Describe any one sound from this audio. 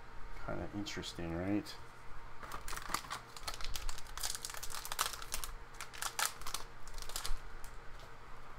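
Playing cards slide and tap softly against each other close by.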